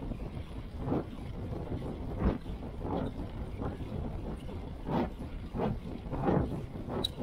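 Wind rumbles steadily past a moving bicycle.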